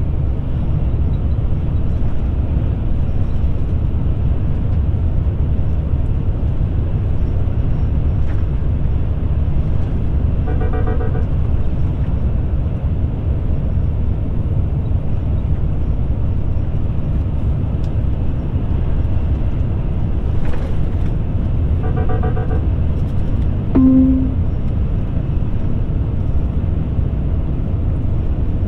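A vehicle's engine hums steadily.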